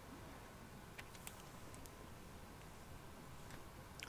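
Paper rustles as a sheet is picked up.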